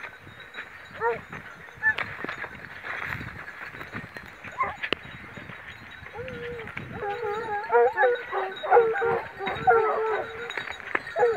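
Several dogs bay and yelp excitedly at a distance.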